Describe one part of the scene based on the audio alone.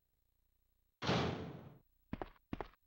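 A heavy door slams shut with a loud bang that rings out.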